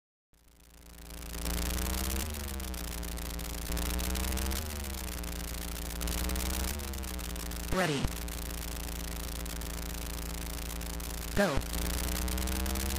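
A video game car engine idles with a steady buzzy electronic drone.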